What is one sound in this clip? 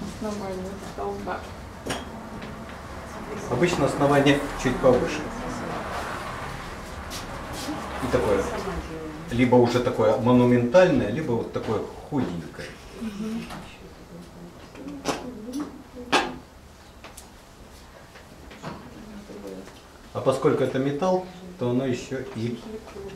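A middle-aged man speaks calmly close by, explaining.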